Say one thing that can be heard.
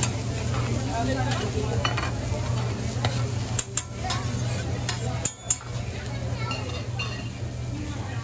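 A crowd of diners chatters in the background.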